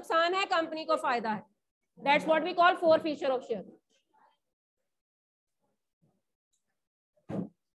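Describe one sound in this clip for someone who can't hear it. A young woman speaks calmly into a close microphone, heard through an online call.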